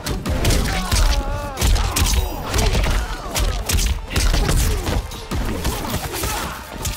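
Heavy punches and kicks thud and crack in quick bursts.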